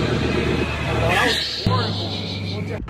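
A young man shouts with excitement nearby.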